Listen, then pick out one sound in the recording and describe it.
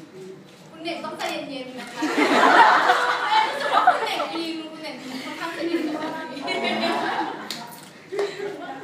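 Young people laugh loudly together.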